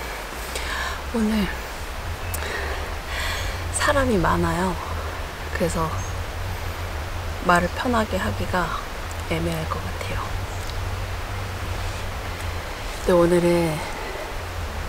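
A young woman speaks calmly and cheerfully close by.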